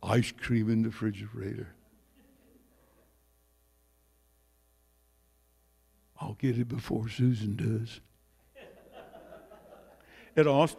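An elderly man speaks with animation into a microphone, heard through loudspeakers in an echoing room.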